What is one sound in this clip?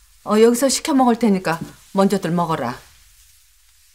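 A middle-aged woman talks on a phone in a calm voice.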